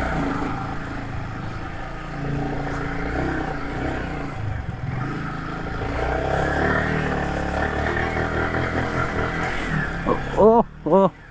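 A motorcycle engine hums steadily as the bike rides slowly.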